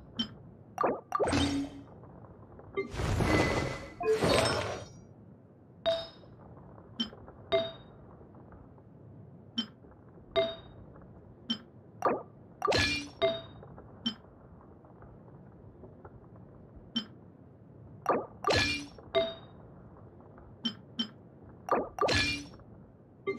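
Short chiming clicks sound again and again, each one quick and bright.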